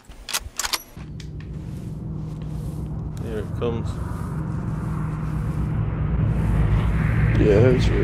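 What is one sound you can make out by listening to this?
An aircraft engine drones overhead and grows louder.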